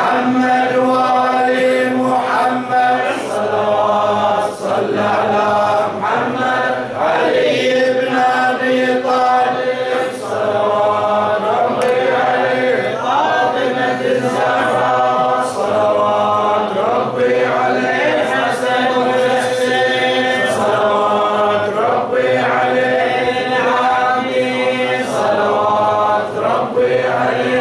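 A man chants in a melodic, sustained voice close to a microphone, with echo.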